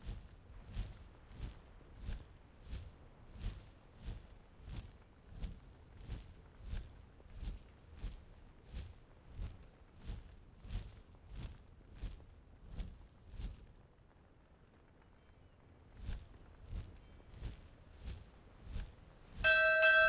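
Large wings flap in a steady, even rhythm.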